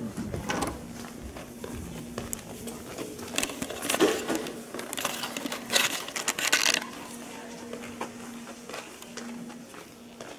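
Footsteps walk along a hard floor in an echoing hallway.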